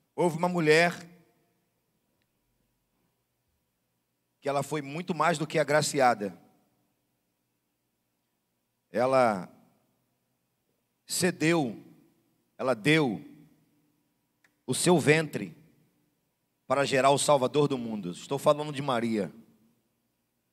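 A middle-aged man speaks into a microphone in bursts, with pauses in between.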